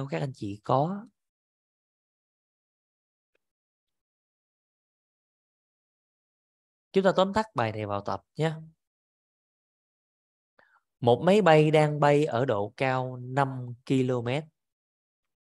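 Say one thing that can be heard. A woman speaks calmly through a microphone, in short phrases with pauses.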